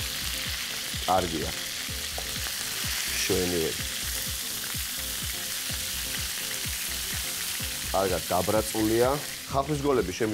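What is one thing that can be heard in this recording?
Meat patties sizzle steadily in hot oil.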